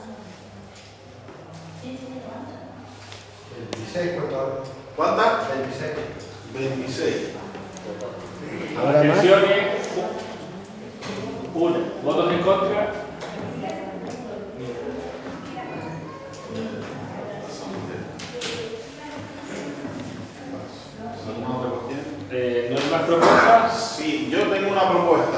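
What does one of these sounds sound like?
A crowd of men and women murmurs and talks in a room.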